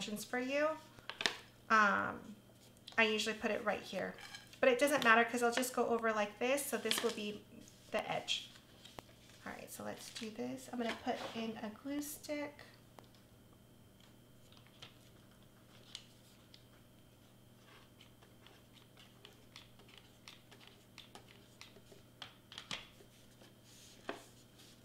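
Paper crinkles and rustles as it is wrapped around a can.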